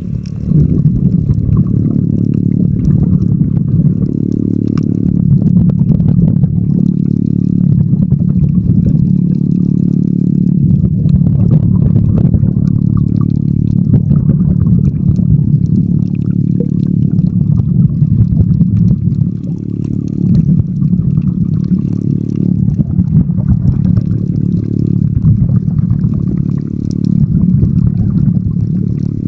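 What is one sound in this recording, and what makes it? Water rushes and rumbles in a low, muffled way, heard from underwater.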